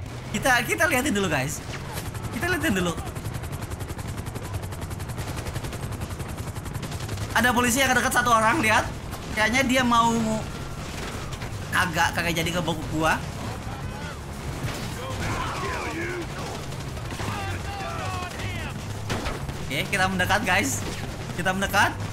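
A young man talks and laughs with animation into a headset microphone, close by.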